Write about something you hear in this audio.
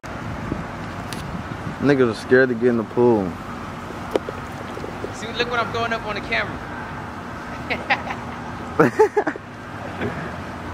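Water splashes gently as a swimmer moves through a pool.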